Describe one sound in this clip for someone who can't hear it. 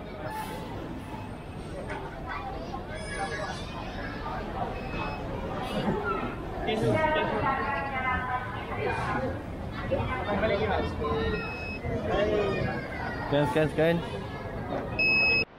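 A crowd murmurs and chatters in a large, open, echoing hall.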